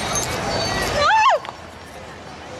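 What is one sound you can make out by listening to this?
An emergency vehicle's siren gives a short rising whoop.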